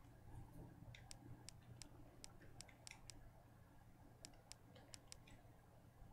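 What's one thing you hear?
Short soft clicks tick as a game menu is browsed.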